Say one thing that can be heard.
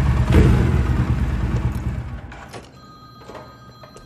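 A motorcycle engine cuts off.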